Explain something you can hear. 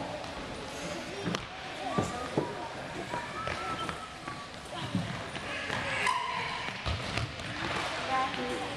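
A ball is kicked and thuds across a wooden gym floor.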